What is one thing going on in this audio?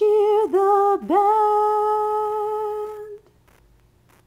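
A song plays through small computer speakers.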